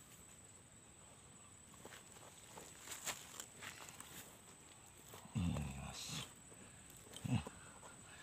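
A hand scrapes through loose soil.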